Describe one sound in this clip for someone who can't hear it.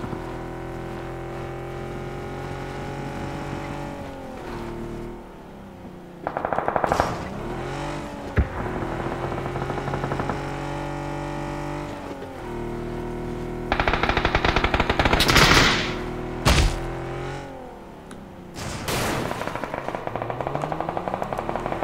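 A car engine hums and revs, shifting pitch up and down.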